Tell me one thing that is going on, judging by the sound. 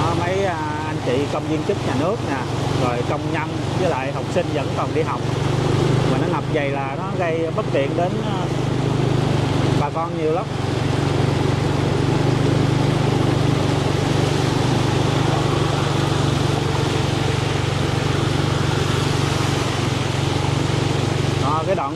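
A motorbike engine hums steadily nearby.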